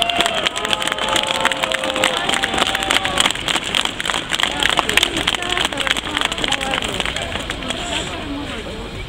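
A large crowd shouts and chants outdoors.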